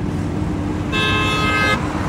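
A motorbike engine hums as it passes close by.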